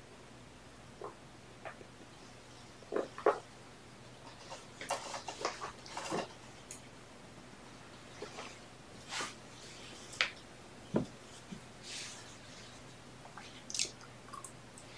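A man speaks softly and briefly, close by.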